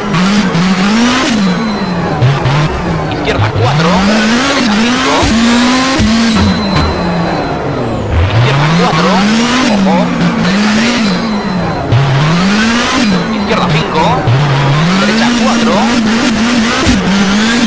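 Tyres squeal on tarmac through tight bends.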